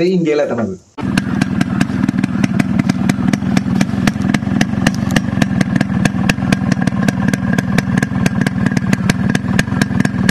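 A motorcycle engine idles with a rapid, steady exhaust thump.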